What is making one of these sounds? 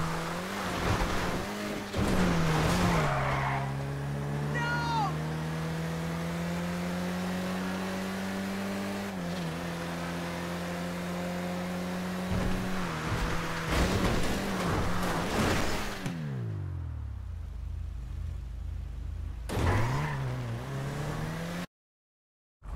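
A car engine revs and roars, shifting gears.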